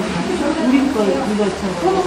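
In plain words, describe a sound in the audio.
Several women talk and chatter nearby.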